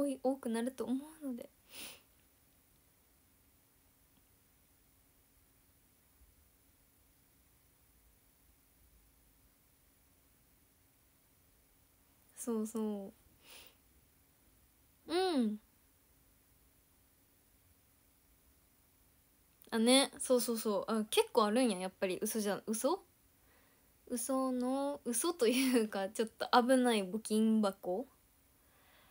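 A young woman talks animatedly into a close microphone, with long pauses.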